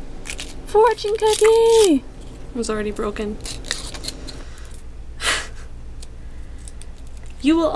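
Plastic wrapper crinkles in a young woman's hands.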